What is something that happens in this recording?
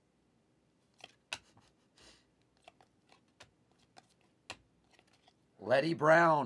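Trading cards slide and flick against each other in a stack.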